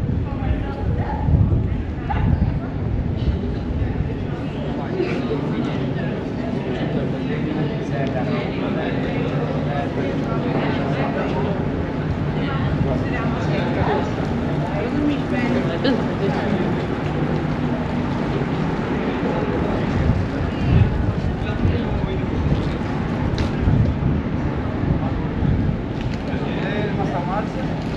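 A crowd of people murmurs and chatters nearby outdoors.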